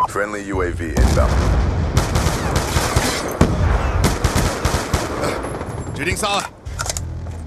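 An assault rifle fires in bursts.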